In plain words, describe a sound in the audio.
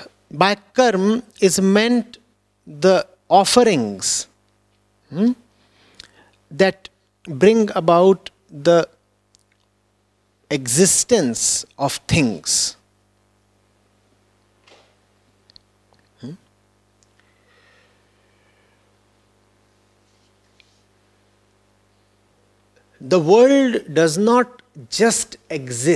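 A man speaks calmly and slowly into a microphone, with long pauses.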